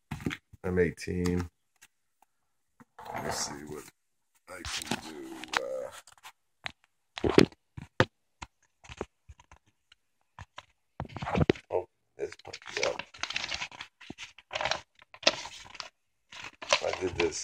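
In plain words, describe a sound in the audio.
Stiff glossy paper rustles and crackles close by.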